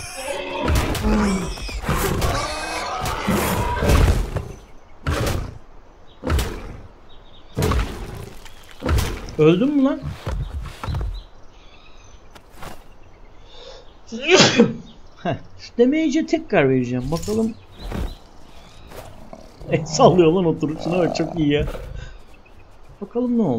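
A man talks with animation into a microphone, close up.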